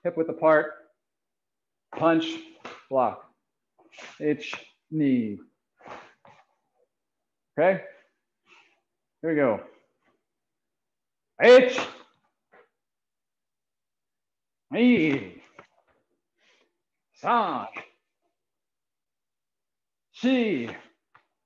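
A young man counts aloud and shouts sharply in short bursts, heard through a microphone.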